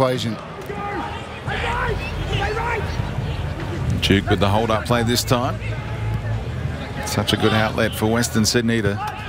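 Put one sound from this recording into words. A crowd murmurs and calls out across a large open stadium.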